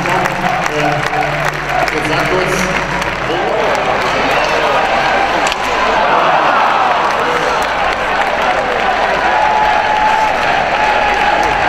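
A large crowd chants and sings loudly in an echoing arena.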